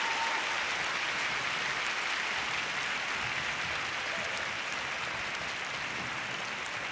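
A large crowd applauds and cheers loudly in a big echoing arena.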